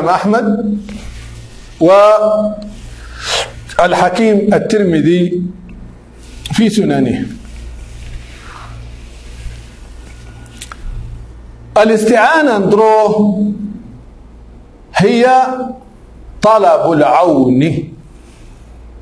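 A man speaks slowly and calmly into a close microphone, with long pauses.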